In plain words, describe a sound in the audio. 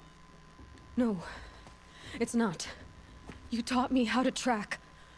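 A young woman speaks earnestly, close by.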